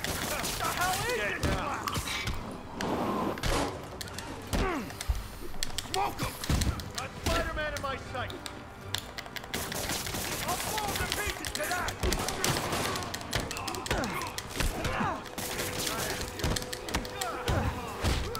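Men shout threats at one another.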